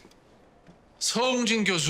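A man speaks up suddenly, close by.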